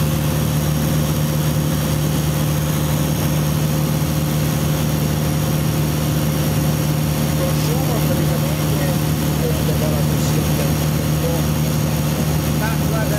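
A small plane's engine drones loudly and steadily from inside the cabin.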